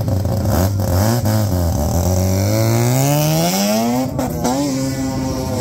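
A car engine revs hard and roars as the car pulls away.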